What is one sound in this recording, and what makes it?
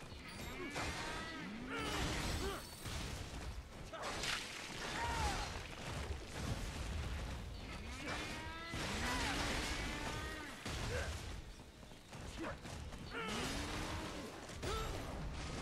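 Metal blades clang and slash in a fast fight.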